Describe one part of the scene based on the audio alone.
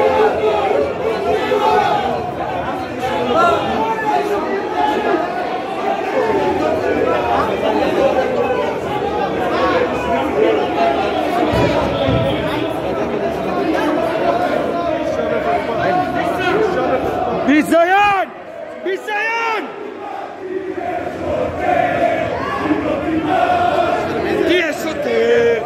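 A crowd of men shouts and argues loudly nearby.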